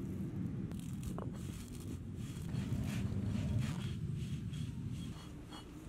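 A heavy stone roller grinds grains against a stone slab.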